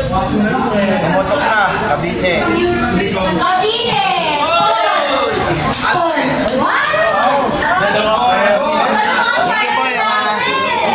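A young woman sings into a microphone through a loudspeaker.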